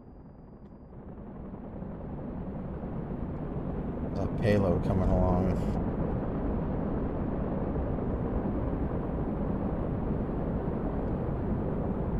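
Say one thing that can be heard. A jet engine hums steadily, then rises to a loud rumbling roar.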